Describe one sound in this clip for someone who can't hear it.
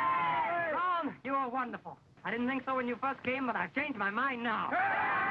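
Young men shout and talk excitedly.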